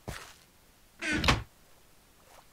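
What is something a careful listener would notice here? A wooden chest thuds shut.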